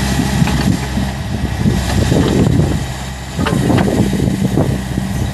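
Hydraulics whine as an excavator's arm swings and extends.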